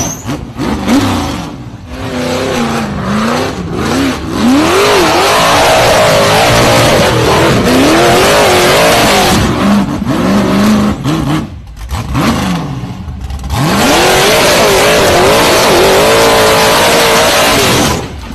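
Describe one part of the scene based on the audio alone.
Big tyres grind and scrape over rock.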